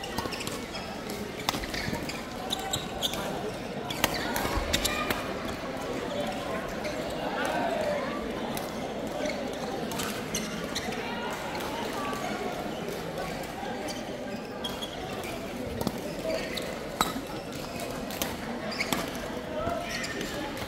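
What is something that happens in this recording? A crowd of players chatters in a large echoing hall.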